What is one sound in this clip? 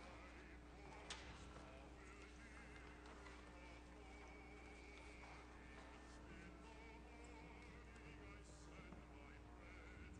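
A violin plays a melody with vibrato in a large echoing hall.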